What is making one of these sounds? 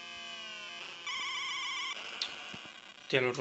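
A retro video game car crashes with a harsh electronic burst.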